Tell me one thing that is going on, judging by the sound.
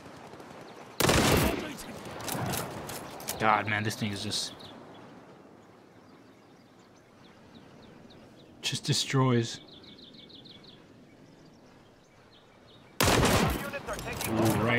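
A rifle fires loud, booming shots.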